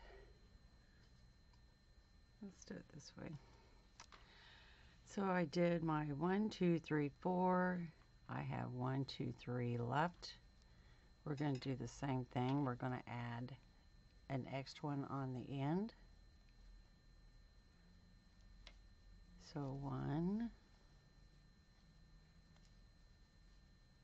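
Yarn rustles softly as a crochet hook pulls loops through it.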